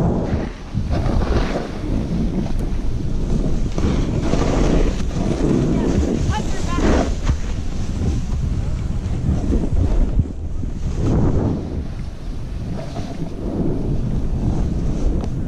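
Skis carve and scrape over packed snow in sweeping turns.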